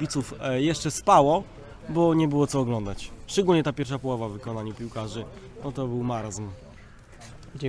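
A young man talks with animation, close by, outdoors.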